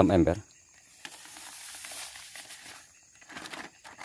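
Liquid pours from a bottle into a bucket.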